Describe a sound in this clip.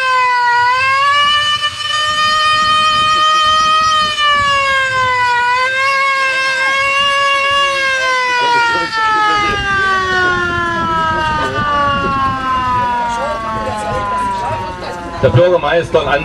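A hand-cranked siren wails loudly, then slowly winds down in pitch.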